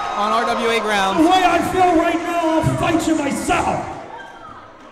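A man announces loudly through a microphone in an echoing hall.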